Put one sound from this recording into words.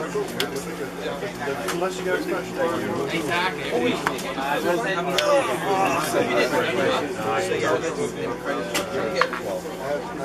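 Playing cards tap and slide on a play mat.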